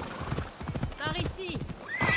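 A horse's hooves thud on dry ground.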